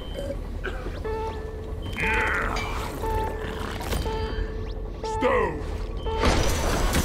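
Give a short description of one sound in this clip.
An alarm beeps in an even rhythm.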